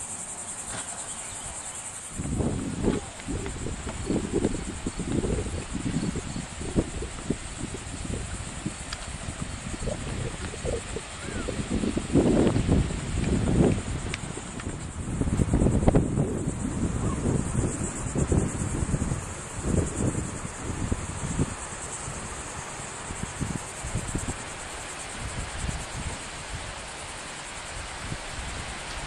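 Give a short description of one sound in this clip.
Waves wash onto a beach in the distance.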